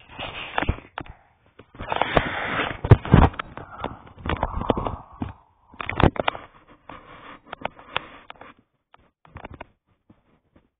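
Cloth rubs and rustles close against the microphone.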